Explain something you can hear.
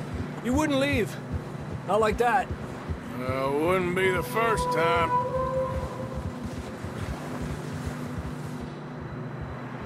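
Horses' hooves thud softly through deep snow.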